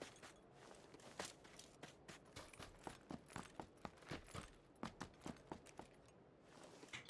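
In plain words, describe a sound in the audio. Footsteps crunch quickly over dry ground.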